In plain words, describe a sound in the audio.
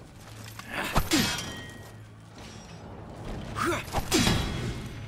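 Steel swords clash with a metallic ring.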